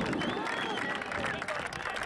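A group of people applauds outdoors.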